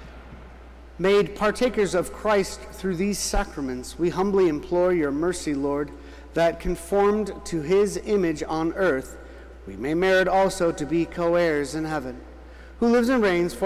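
A man chants in song through a microphone in a large echoing hall.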